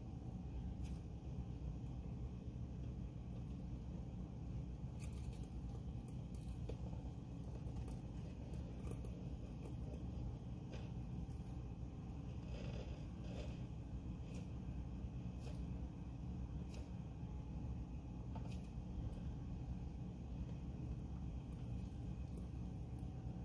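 Dry shed skin crackles faintly as a gecko pulls at it.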